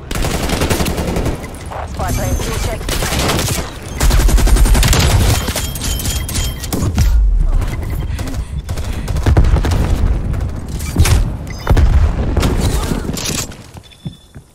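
Rifle shots fire in loud rapid bursts.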